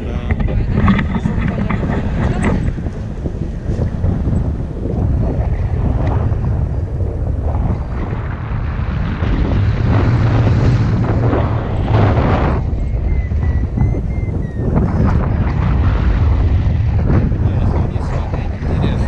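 Strong wind rushes and buffets past the microphone outdoors.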